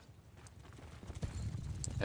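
Horses gallop over snow.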